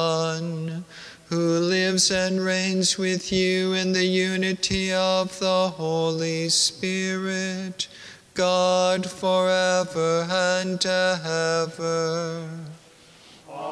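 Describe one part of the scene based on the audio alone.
An older man chants through a microphone in a large echoing hall.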